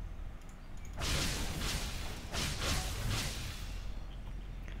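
A loud whoosh of rushing air sweeps past, then fades.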